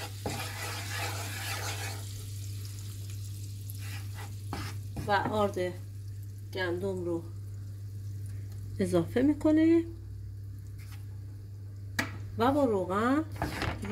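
Butter sizzles in a hot frying pan.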